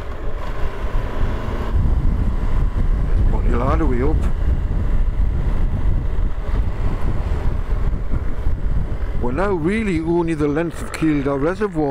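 Wind buffets and rushes past loudly.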